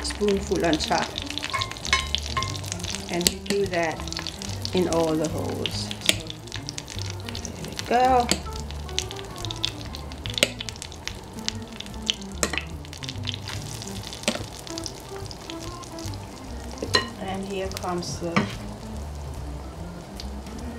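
A metal spoon clicks and scrapes against a pan.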